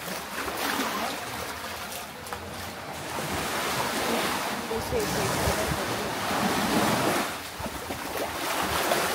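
Waves wash gently onto a sandy beach.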